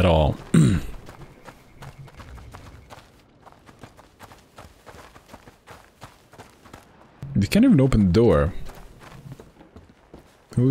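Footsteps walk steadily over stone and wooden boards.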